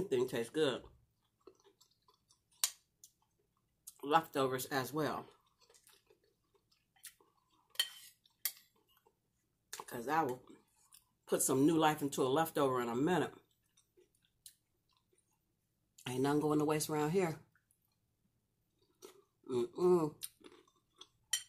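A woman talks calmly and close by, in bursts between bites.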